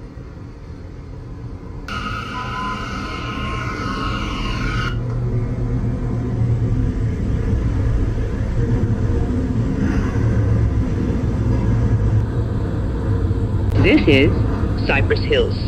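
A subway train rumbles along the tracks.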